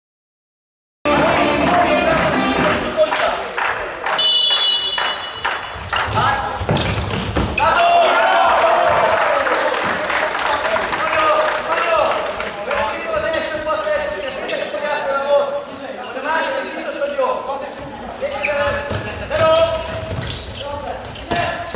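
A ball thuds off a foot with each kick.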